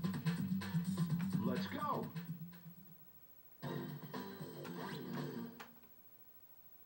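Video game music plays from a television speaker.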